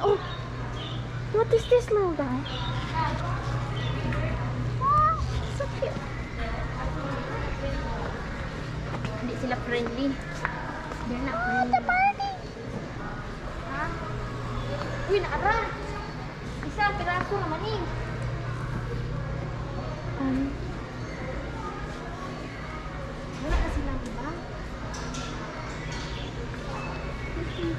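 A young woman talks nearby in a calm voice.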